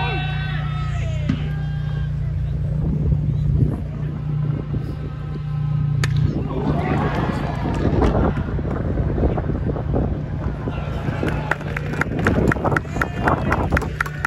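A crowd cheers and chants loudly in a stadium.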